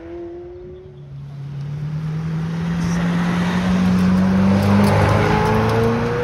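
A vehicle engine drones steadily as it drives by.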